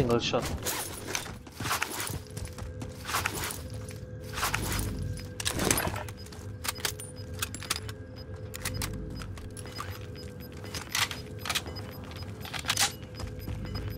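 Footsteps thud quickly across the ground.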